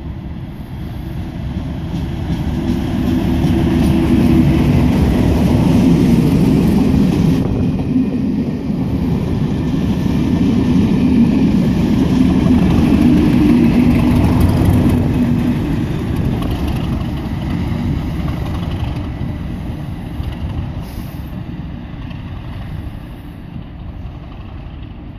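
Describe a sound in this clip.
A diesel locomotive rumbles and drones loudly as it passes close by, then fades into the distance.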